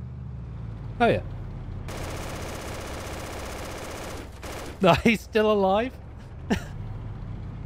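A young man exclaims loudly into a close microphone in short bursts.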